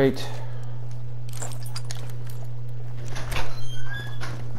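A rifle clacks as it is swapped in by hand.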